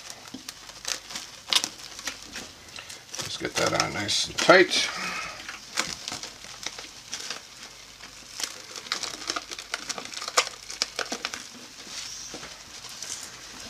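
Plastic wrap crinkles and rustles as hands stretch it tight.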